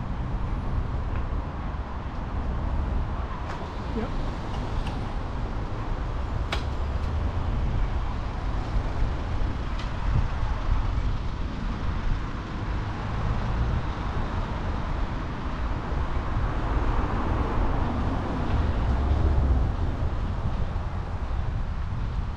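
City traffic hums and rumbles nearby.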